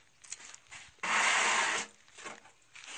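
Water splashes as it is scooped and poured out.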